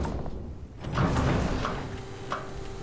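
A heavy door clanks and hisses as it unlocks.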